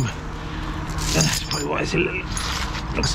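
A metal chain clinks and rattles.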